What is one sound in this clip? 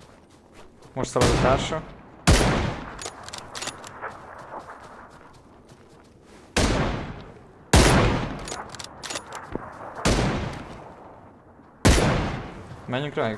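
A scoped rifle fires sharp shots that echo outdoors.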